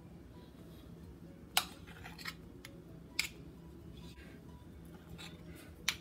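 Metal spoons clink and scrape against a glass dish.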